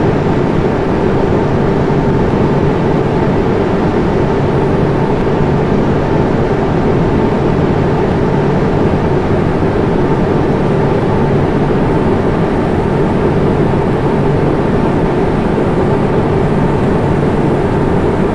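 Jet engines drone steadily and evenly.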